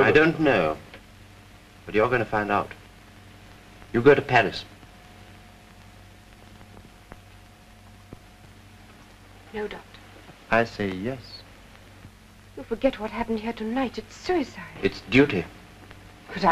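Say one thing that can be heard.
A middle-aged man speaks in short, pointed remarks.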